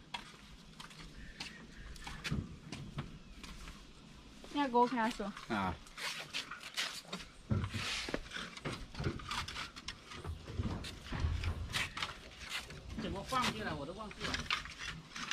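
A man knocks and taps on roof tiles.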